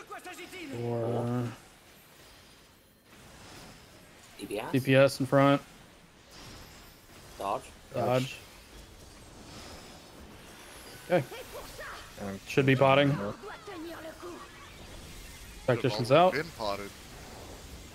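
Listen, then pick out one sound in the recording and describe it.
Magic spells burst and crackle in a game battle.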